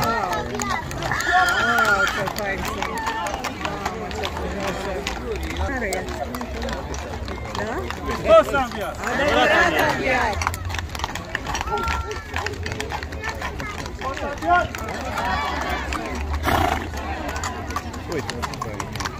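Hooves clop on pavement as horses walk by.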